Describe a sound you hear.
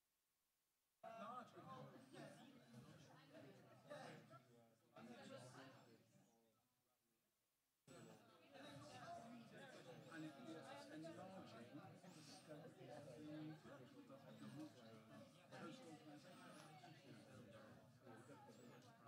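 Many men and women chatter at once in a room.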